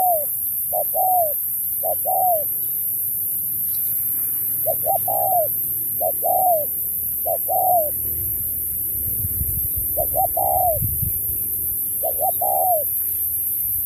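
Doves coo in short, repeated calls close by.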